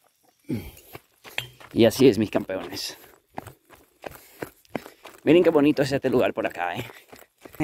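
Footsteps crunch on a gravel track.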